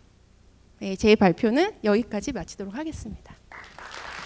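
A young woman speaks warmly through a microphone in a large hall.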